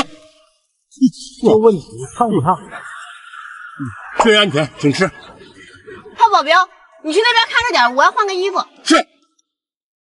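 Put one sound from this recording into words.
A man speaks with animation at close range.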